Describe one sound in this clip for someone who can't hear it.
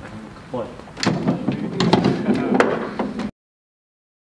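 A foosball game rattles and clacks.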